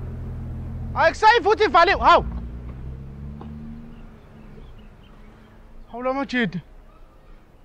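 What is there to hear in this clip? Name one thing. A young man speaks loudly outdoors.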